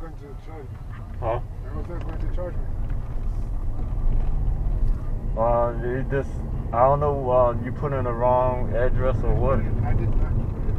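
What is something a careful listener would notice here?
A man speaks calmly from the back seat.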